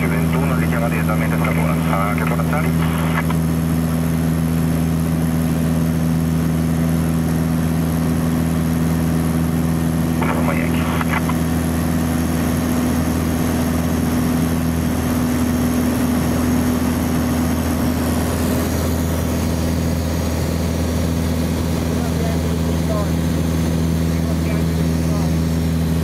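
A small plane's engine drones loudly and steadily.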